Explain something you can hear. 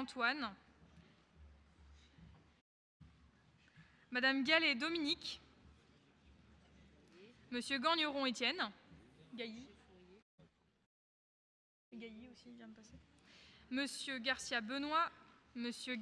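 A man calls out in short bursts through a microphone in a large echoing hall.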